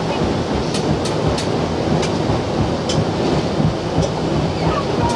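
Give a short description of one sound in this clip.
Water laps and swishes steadily past a moving boat.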